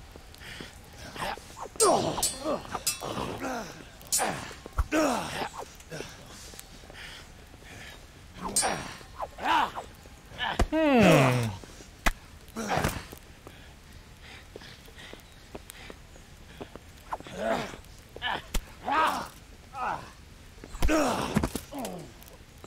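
Men grunt and shout with effort as they fight.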